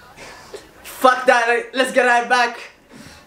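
A young man sings loudly.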